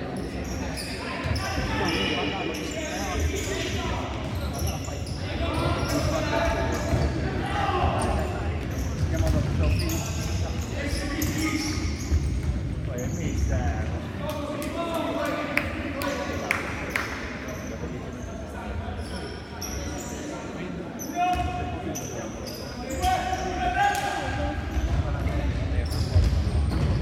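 Players' shoes squeak on a hall floor.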